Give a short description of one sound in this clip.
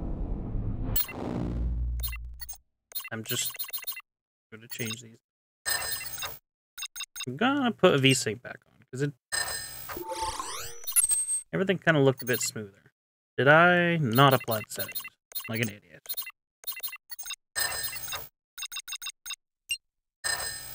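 Short electronic clicks sound as menu options are selected.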